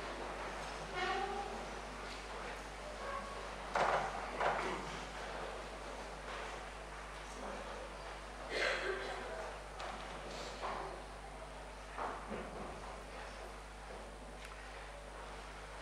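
A man reads out through a microphone in a large echoing hall.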